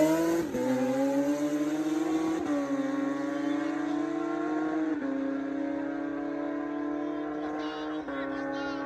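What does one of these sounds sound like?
Motorcycle engines roar at high revs, rising in pitch and dropping with each gear shift as the bikes speed away.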